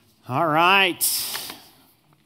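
Paper rustles as a sheet is lifted.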